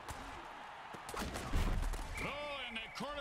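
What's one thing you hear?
Football players collide in a heavy tackle with a loud thud.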